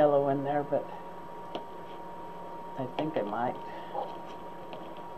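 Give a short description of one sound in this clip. An elderly woman talks.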